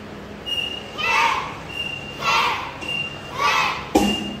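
A group of children shout together in loud, short bursts in an echoing hall.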